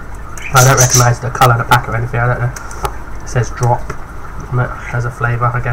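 A plastic candy wrapper crinkles as it is handled.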